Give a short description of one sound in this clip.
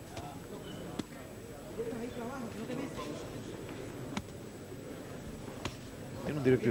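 Boxing gloves thud against a body with sharp smacks.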